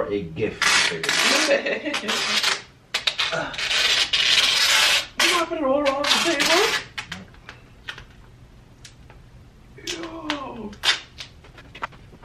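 A woman nearby talks loudly and cries out.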